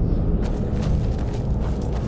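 A fire crackles in a brazier.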